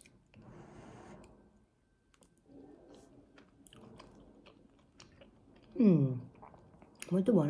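A young woman chews food close by.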